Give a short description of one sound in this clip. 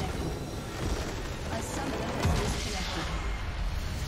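A loud magical explosion booms and rumbles.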